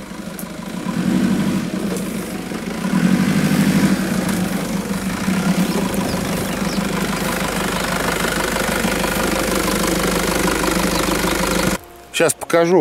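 An engine rumbles as an off-road vehicle drives slowly over a bumpy dirt track.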